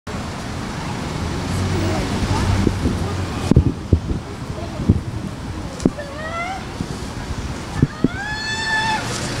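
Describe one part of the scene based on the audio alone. City traffic hums along a nearby street.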